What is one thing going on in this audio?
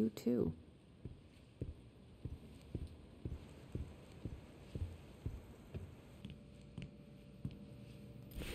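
Footsteps thud slowly indoors.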